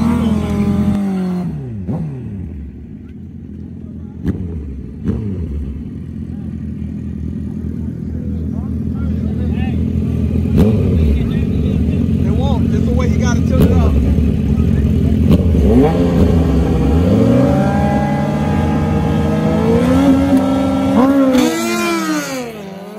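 A motorcycle engine revs loudly, rising and falling.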